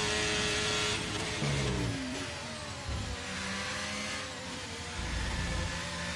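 A racing car engine drops in pitch as the car brakes hard and downshifts.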